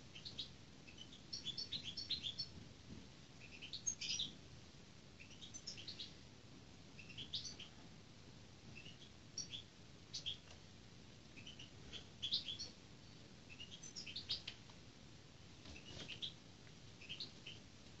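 A hawk's wings flap and flutter close by.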